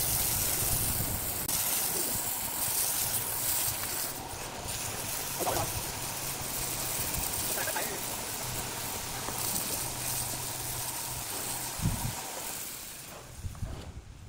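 A pressure washer sprays water in a loud, steady hiss.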